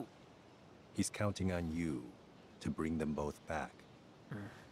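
A man speaks calmly and clearly, close by.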